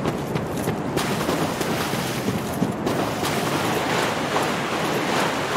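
Water splashes underfoot with each step.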